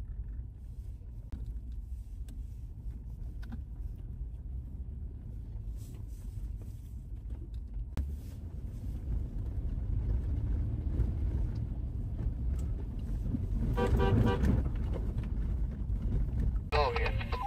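A car engine rumbles low and steady while driving slowly.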